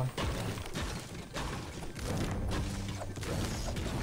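A pickaxe strikes a wall again and again with dull thuds.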